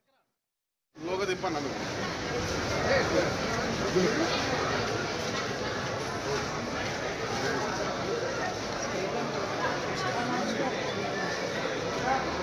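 A crowd murmurs and chatters around.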